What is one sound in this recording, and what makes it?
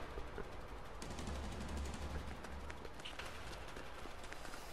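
Footsteps fall on concrete.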